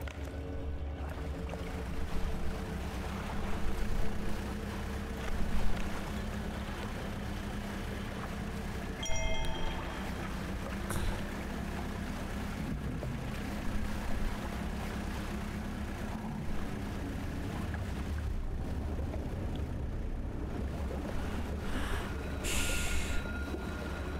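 A small boat engine hums steadily.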